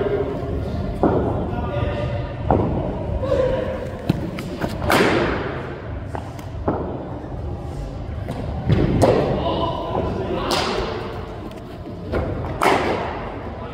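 A cricket bat strikes a ball with sharp cracks.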